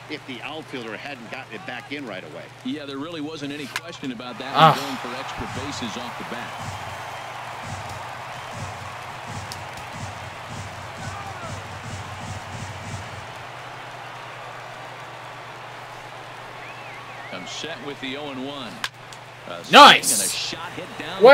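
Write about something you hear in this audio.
A stadium crowd murmurs and cheers steadily.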